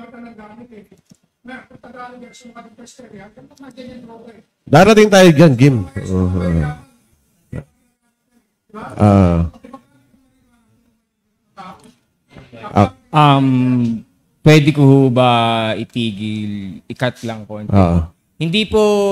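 A young man speaks into a microphone through a loudspeaker, calmly and with pauses.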